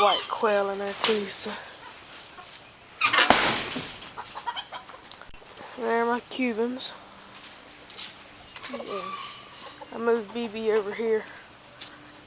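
Chickens cluck and squawk nearby.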